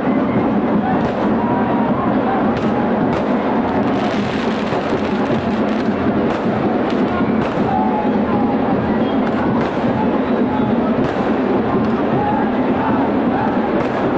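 Firecrackers pop and crackle repeatedly.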